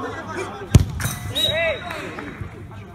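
Men cheer and shout after the kick.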